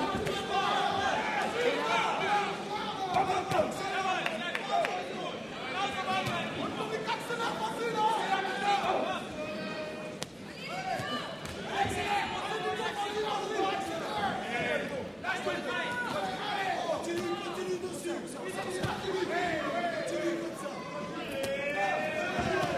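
Punches thud against padded gloves and bodies.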